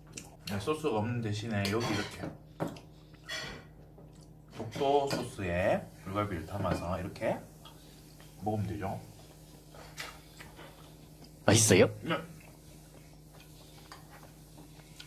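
A young man chews food noisily close to a microphone.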